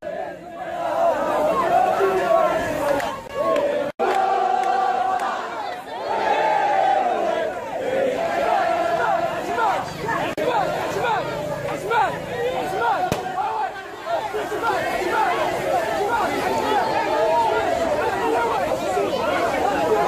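A large crowd chants and sings loudly outdoors.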